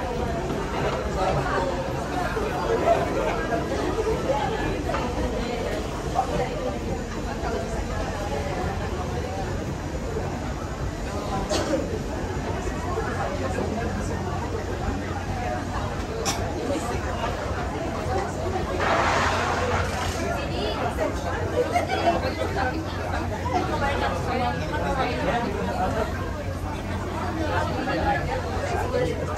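A crowd of people chatters in an echoing walkway.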